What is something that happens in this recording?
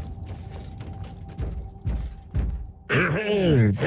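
Heavy footsteps clank on a metal floor.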